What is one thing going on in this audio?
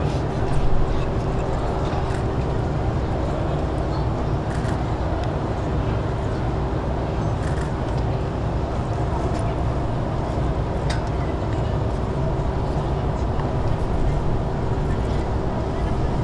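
Car engines hum low as a motorcade drives slowly past.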